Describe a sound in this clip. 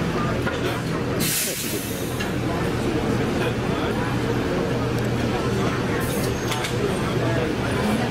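Men talk and call out close by, over one another.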